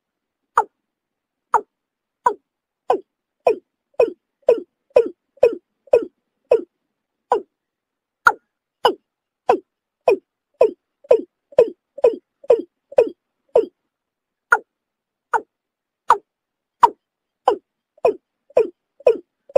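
A bird calls over and over with short, sharp, hoarse notes.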